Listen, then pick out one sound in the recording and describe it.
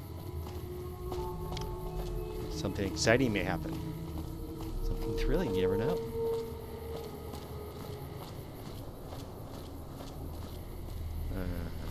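Footsteps crunch steadily on a cracked road.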